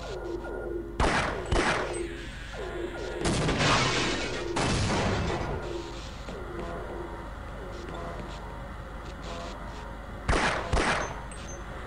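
A pistol fires sharp single shots.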